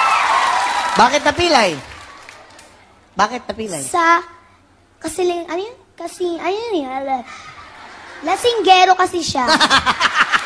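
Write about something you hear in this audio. A boy speaks loudly into a microphone with animation.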